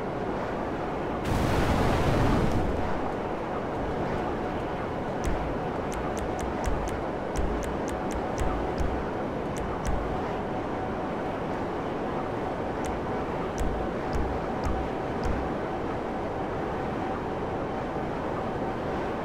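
A jet engine hums steadily and loudly.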